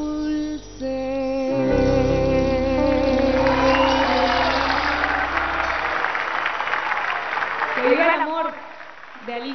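A band plays music.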